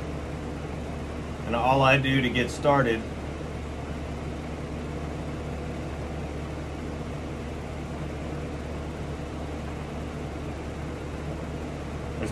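An airbrush hisses softly and steadily.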